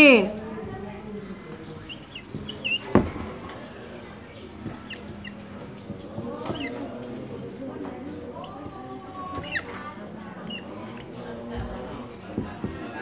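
A marker squeaks as it writes on a board.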